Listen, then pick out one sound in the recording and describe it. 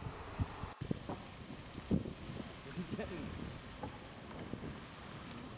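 A geyser hisses and splashes steadily as it erupts.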